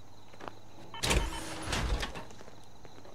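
Heavy metal armour clanks and hisses open.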